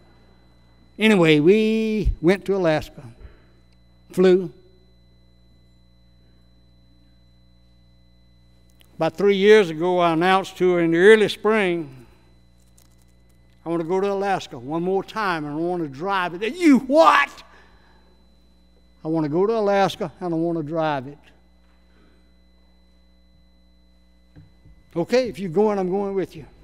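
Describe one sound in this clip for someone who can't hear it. An elderly man preaches with feeling into a microphone, pausing between phrases.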